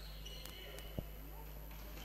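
A ball is kicked with a sharp thud in a large echoing hall.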